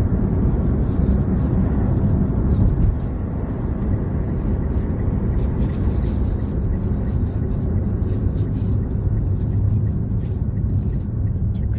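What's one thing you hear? A vehicle's engine rumbles steadily as it drives along a road.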